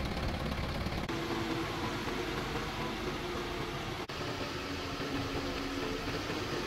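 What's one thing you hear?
A crane's hydraulics whine as levers are pulled.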